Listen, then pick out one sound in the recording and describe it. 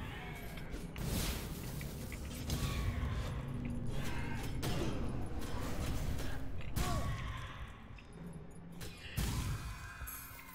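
Sword slashes and impacts ring out in quick bursts.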